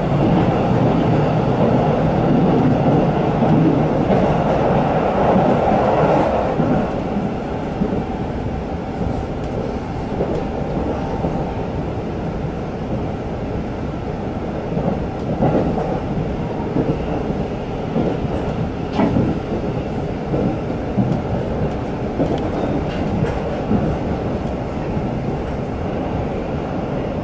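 A train rumbles steadily along the track, with wheels clacking on the rails.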